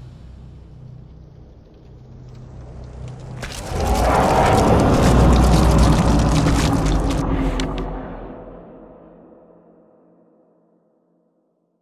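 A magical energy crackles and hums, then swells into a loud, deep roaring burst that slowly fades away.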